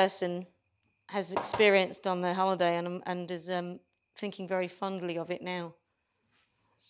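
A woman speaks calmly and closely.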